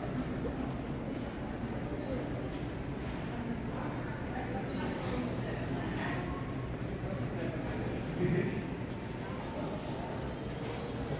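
A crowd murmurs softly in the distance in a large echoing hall.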